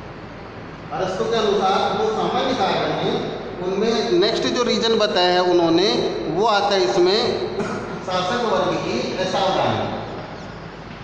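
A man speaks loudly and clearly, as if teaching.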